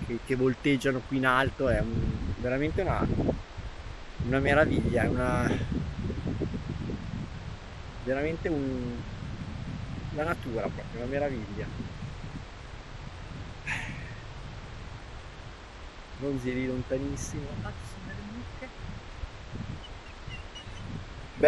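Wind blusters across the microphone outdoors.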